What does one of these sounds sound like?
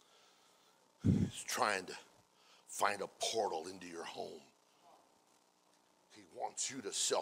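A middle-aged man speaks calmly into a microphone in an echoing room.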